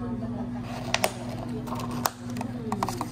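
Plastic lids snap onto cups.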